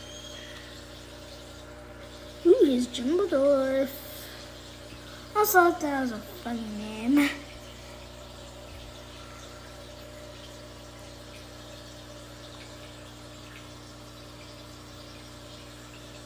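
An aquarium filter hums steadily nearby.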